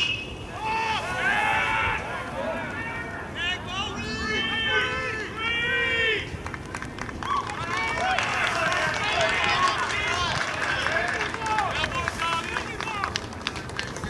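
A crowd of spectators and players cheers and shouts outdoors.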